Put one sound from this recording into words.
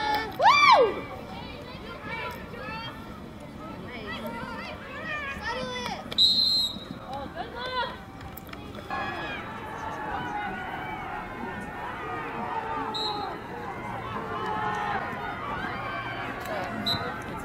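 Young women call out to each other across a field.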